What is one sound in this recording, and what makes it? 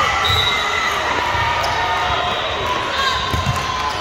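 A volleyball thuds off a player's forearms.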